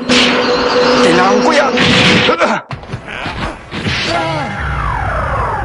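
A young man grunts and shouts with effort.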